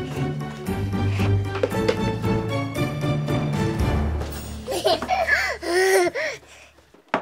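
A young child laughs and squeals close by.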